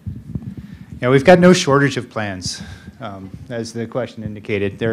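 A middle-aged man speaks into a handheld microphone in a large room.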